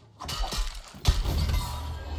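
A magic blast bursts with a whoosh.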